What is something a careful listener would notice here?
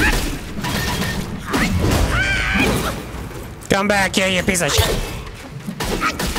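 Heavy blows land with thuds and clangs in a fight.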